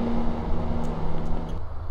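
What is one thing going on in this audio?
Footsteps walk along a pavement.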